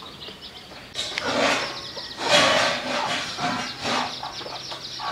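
A hen clucks loudly.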